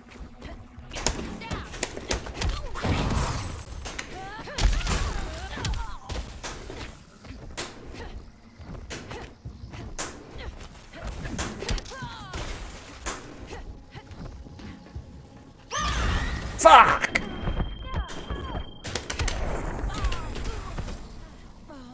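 Punches and kicks land with sharp thuds and cracks.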